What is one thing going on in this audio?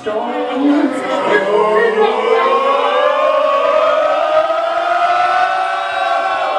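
A man sings loudly into a microphone over a loudspeaker.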